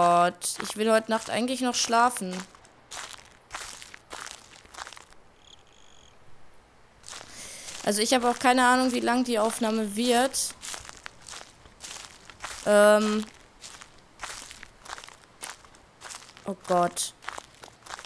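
A young woman talks quietly into a microphone, close up.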